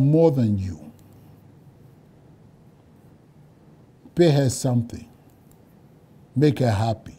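An elderly man speaks slowly and earnestly into a close microphone, with long pauses.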